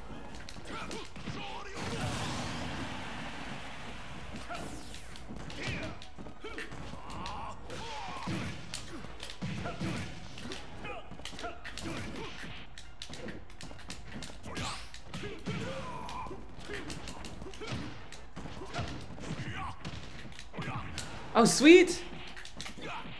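Game punches and kicks thud and crack in quick bursts.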